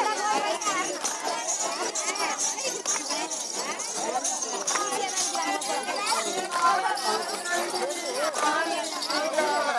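Women clap their hands in rhythm as they dance.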